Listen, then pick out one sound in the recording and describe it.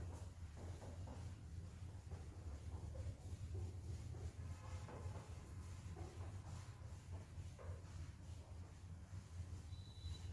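A cloth wipes a whiteboard with a soft rubbing sound.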